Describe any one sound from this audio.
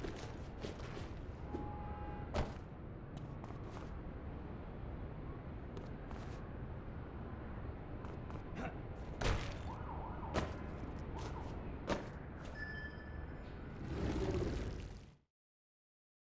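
Heavy footsteps thud and scuff across a hard rooftop.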